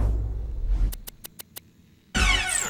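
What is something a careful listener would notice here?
Short electronic menu clicks tick in quick succession.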